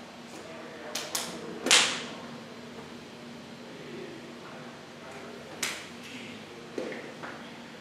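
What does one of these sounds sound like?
A man's hands slap together sharply a few times.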